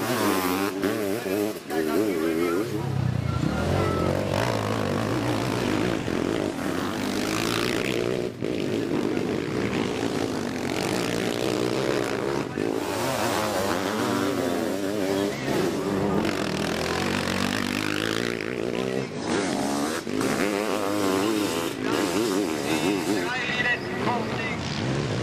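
Motorcycle engines roar and rev loudly as they race past.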